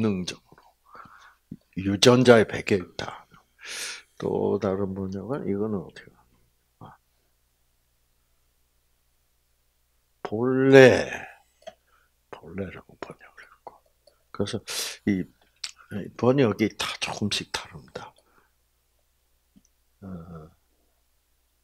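A man speaks calmly into a microphone, in bursts with pauses.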